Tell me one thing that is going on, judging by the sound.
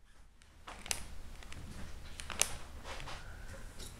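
Stiff folded paper rustles as a paper bat's wings flap.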